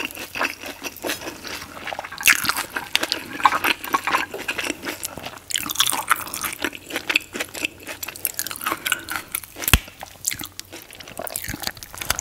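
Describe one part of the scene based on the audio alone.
Fingers crinkle and squish a rice paper roll close to the microphone.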